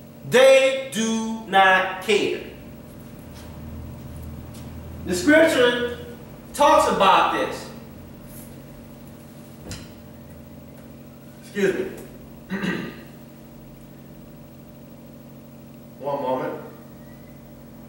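A man speaks calmly in short phrases, in a room with a slight echo.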